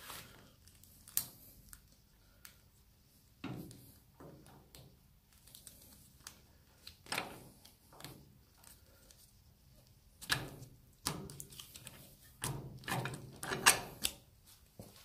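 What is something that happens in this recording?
Metal parts click and scrape as a pin is worked by hand.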